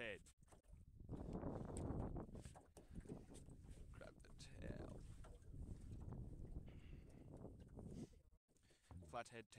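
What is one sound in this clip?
Water laps against a small boat's hull.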